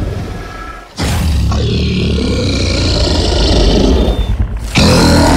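A giant serpent lets out a deep, rumbling roar.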